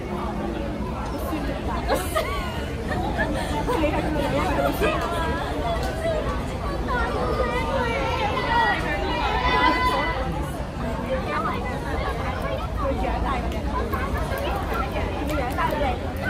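Young women chat and laugh together nearby, outdoors.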